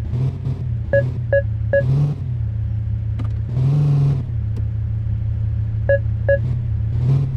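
A parking sensor beeps in short bursts.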